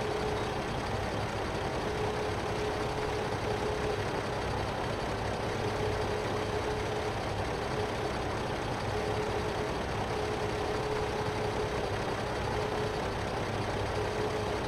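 A tractor engine runs with a steady low hum.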